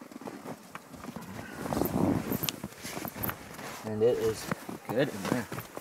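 Hands scrape and crunch through packed snow.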